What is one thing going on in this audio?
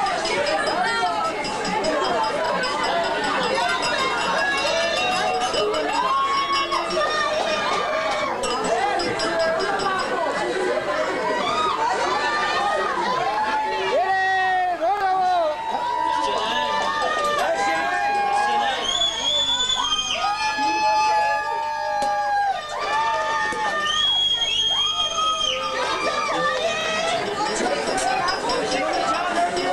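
A crowd of men and women chatters loudly nearby.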